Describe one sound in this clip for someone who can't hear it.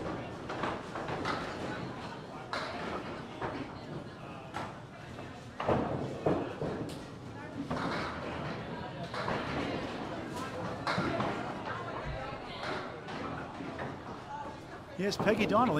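Bowling balls roll down wooden lanes with a low rumble.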